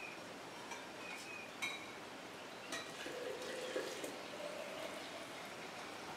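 Liquid pours from a metal pot into a jar.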